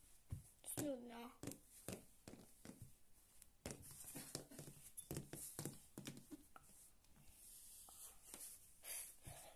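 A plastic toy horse taps on a wooden floor.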